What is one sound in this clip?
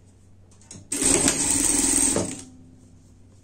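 A sewing machine runs in a quick burst of stitching.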